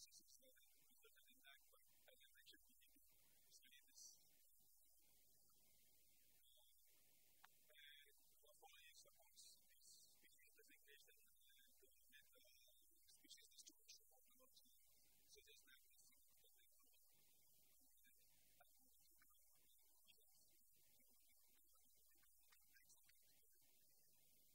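A man speaks calmly at a distance to an audience.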